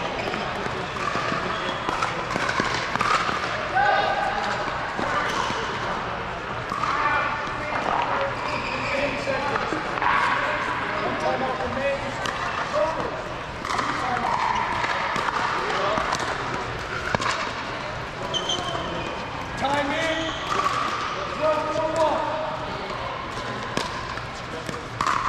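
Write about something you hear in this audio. Paddles strike a plastic ball with sharp pops.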